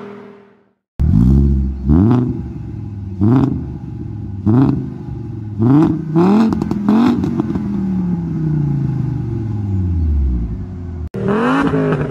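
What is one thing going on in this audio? A car engine revs hard in short bursts and idles with a deep exhaust rumble.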